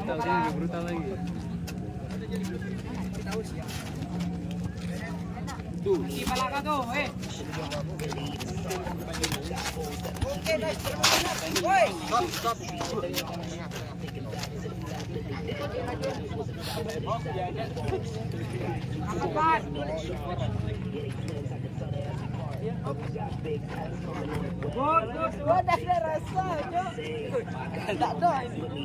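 Young men talk and shout with excitement outdoors.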